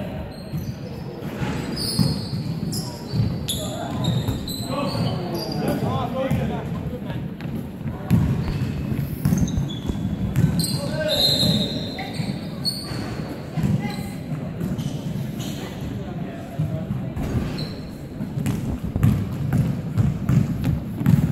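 Players' footsteps thud and pound in a large echoing hall.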